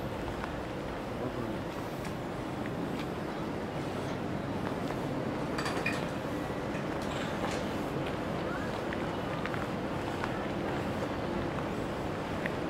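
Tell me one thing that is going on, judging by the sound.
Footsteps walk slowly across a hard floor, coming closer.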